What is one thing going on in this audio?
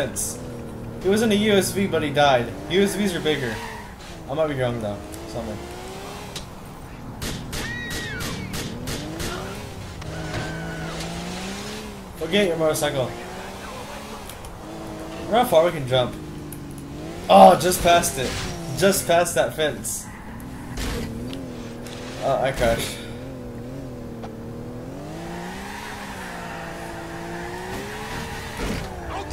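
A car engine revs up and down as the car speeds along.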